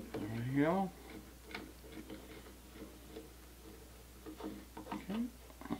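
A screwdriver clicks and scrapes as a screw turns.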